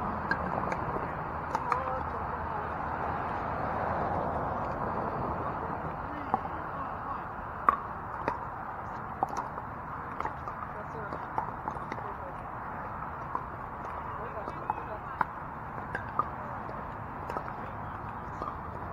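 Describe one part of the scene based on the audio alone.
Paddles pop against a plastic ball in sharp, quick hits outdoors.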